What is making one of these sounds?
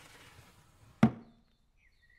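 A body thumps down onto a mattress.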